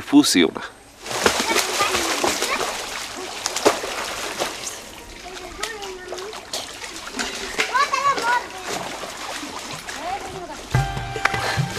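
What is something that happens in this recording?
Water splashes as people wash at a river's edge.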